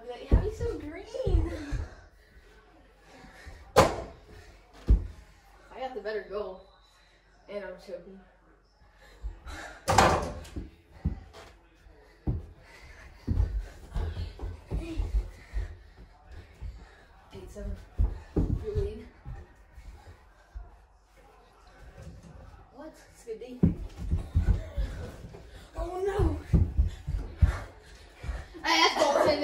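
Young boys shout and laugh with excitement.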